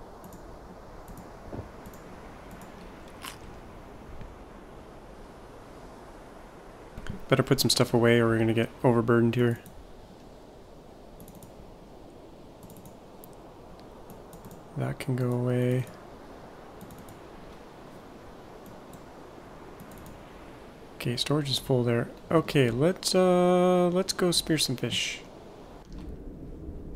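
Gentle waves wash over open water.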